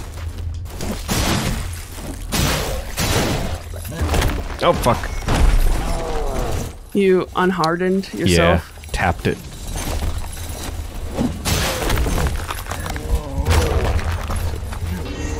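Metal weapons clash and clang.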